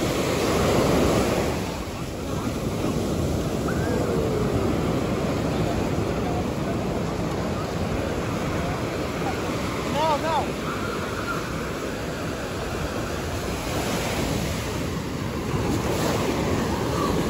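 Waves crash and wash onto the shore.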